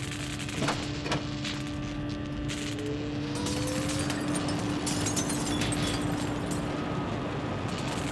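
Footsteps clank on a metal grating.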